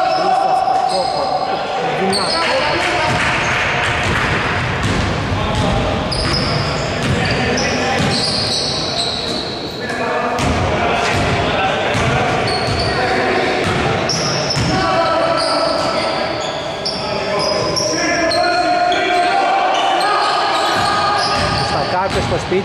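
Men call out to each other across an echoing hall.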